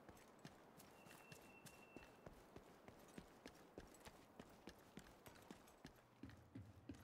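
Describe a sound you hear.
Footsteps crunch steadily over grass and pavement.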